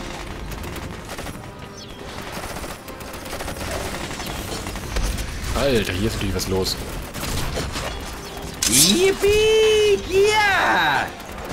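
Soldiers clash with weapons in a skirmish.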